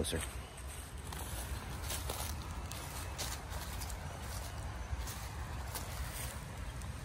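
Dry leaves crunch underfoot with steady footsteps.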